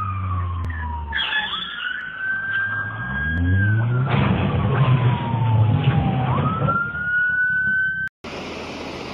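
A car engine roars and revs as it races past.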